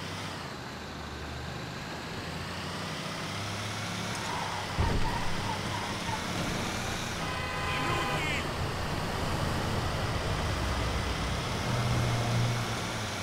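A truck engine rumbles steadily as it drives along a road.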